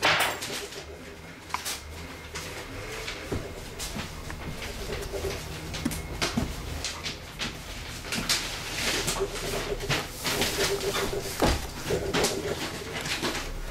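A small metal tool scrapes and taps on wood.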